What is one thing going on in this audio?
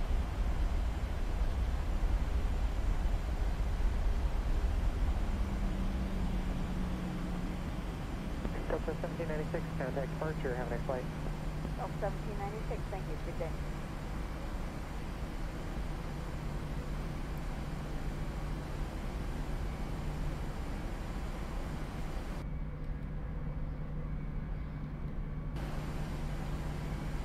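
A jet engine hums steadily as an airliner taxis.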